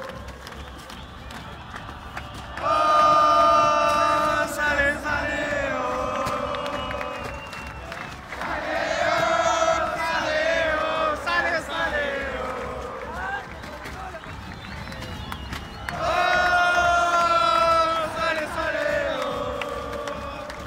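A large stadium crowd sings and chants loudly together in waves.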